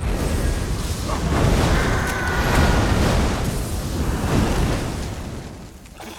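A fire blast roars loudly.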